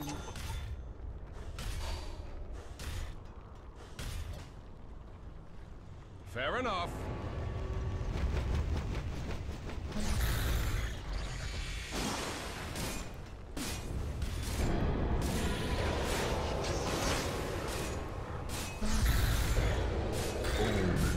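Fantasy game battle effects crackle and clash with magic blasts and strikes.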